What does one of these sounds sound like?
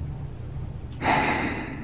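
A man answers quietly in a low voice.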